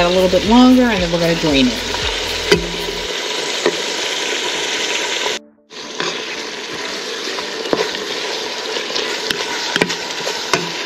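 A wooden spoon scrapes and taps against the pan while stirring.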